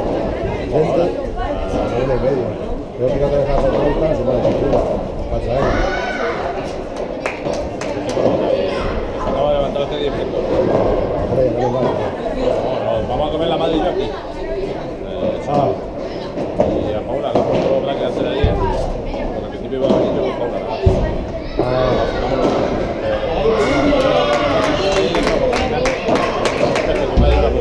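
Padel balls are struck with paddles, with sharp pops echoing in a large hall.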